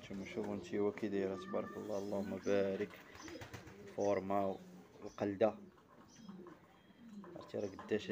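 A pigeon coos softly close by.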